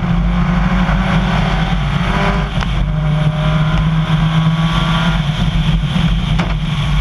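A rally car's engine roars at full throttle.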